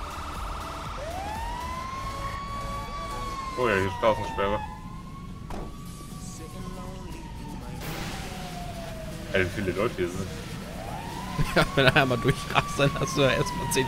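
A fire truck siren wails, rising and falling.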